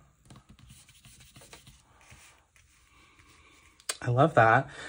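Sheets of paper rustle and slide softly against each other.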